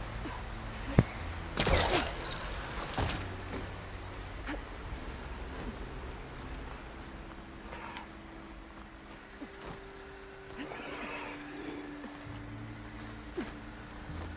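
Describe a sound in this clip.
Hands scrape and grip on rock while climbing.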